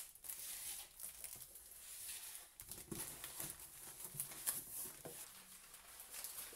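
A cardboard box scrapes and thumps on a wooden table.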